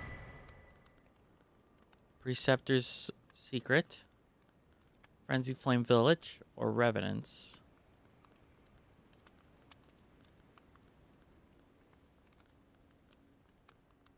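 Soft menu clicks tick as a selection moves through a list.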